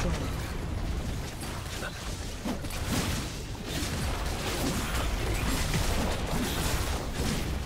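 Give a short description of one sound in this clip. Game spell effects whoosh and clash in a fight.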